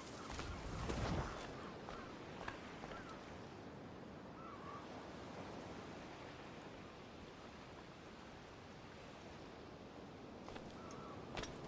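Footsteps crunch over rocks and dirt.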